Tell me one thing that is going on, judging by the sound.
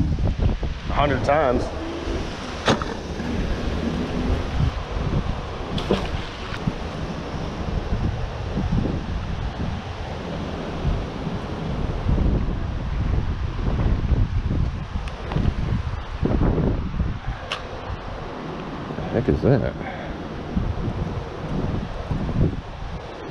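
Wind buffets outdoors, rumbling steadily.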